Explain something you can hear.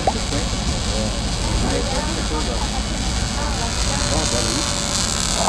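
An arc welder crackles and sizzles steadily.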